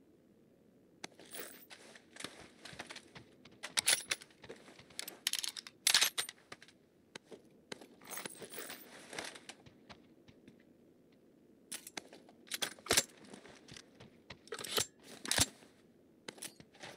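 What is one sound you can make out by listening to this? Footsteps scuff and tap on a hard wooden floor.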